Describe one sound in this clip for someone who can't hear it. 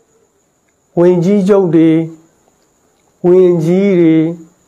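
A man speaks calmly and slowly into a microphone.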